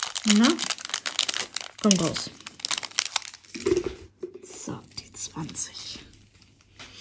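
Plastic crinkles and rustles close by.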